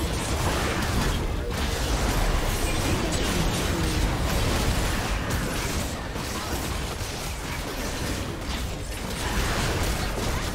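Spell effects and weapon hits crackle and clash in a fast fight.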